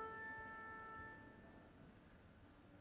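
Violins hold a soft, sustained note and fade.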